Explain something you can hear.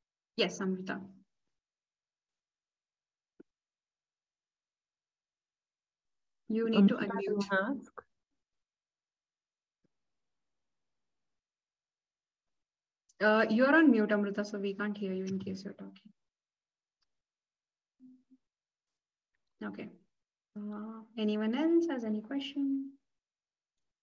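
A young woman speaks calmly in short phrases over an online call.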